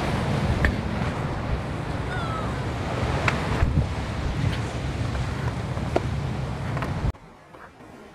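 Waves wash against rocks along the shore.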